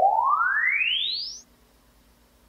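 A test tone from a loudspeaker sweeps quickly upward in pitch.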